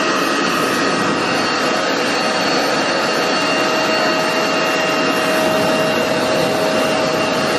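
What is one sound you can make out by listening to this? A vacuum cleaner hums loudly and steadily with a whining tone.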